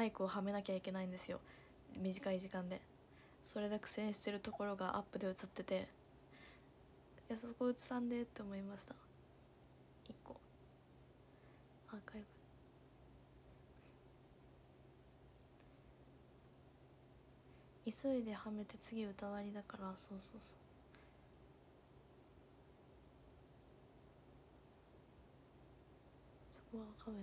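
A young woman talks casually and close to the microphone, in short bursts with pauses.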